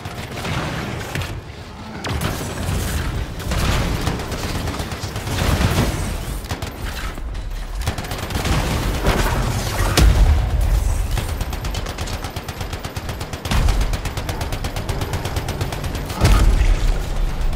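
Explosions rumble and crack.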